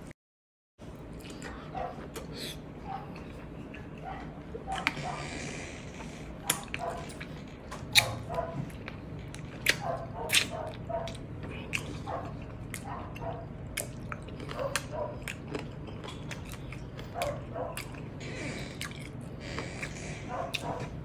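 A person chews food wetly and smacks their lips close up.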